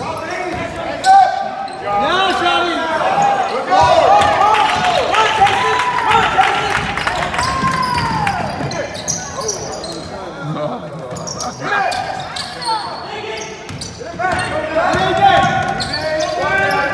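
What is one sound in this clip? Spectators chatter and call out in an echoing gym.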